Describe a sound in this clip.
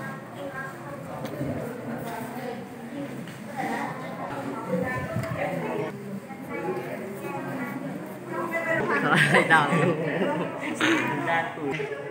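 Children chatter and talk nearby.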